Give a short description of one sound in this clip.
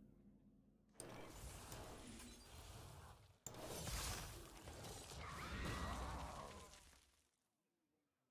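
Game sound effects whoosh and burst loudly.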